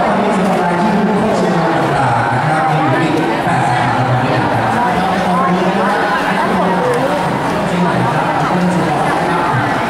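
A seated crowd murmurs softly.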